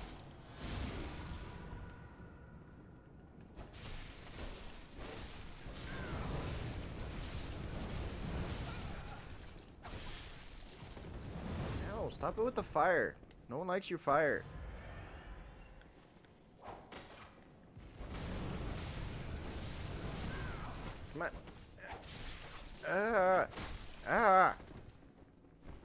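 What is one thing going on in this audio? A blade swings and strikes.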